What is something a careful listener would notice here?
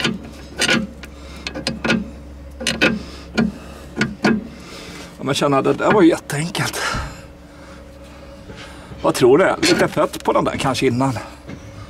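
Metal parts click and knock.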